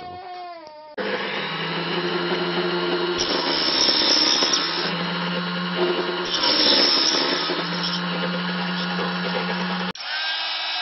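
A small power saw runs with a loud, steady whine.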